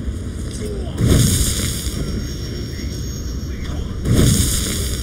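A blade slashes through the air with sharp whooshes.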